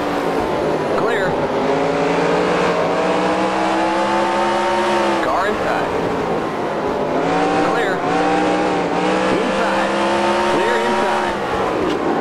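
Other race cars whine past nearby.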